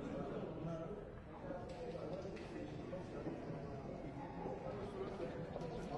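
Game pieces click on a wooden board.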